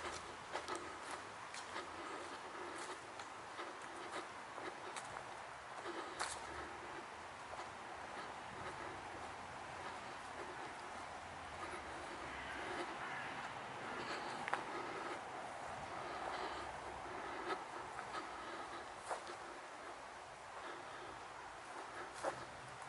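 Footsteps tread slowly over grass and fallen leaves outdoors.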